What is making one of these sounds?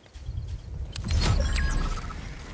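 A scoped rifle fires a shot.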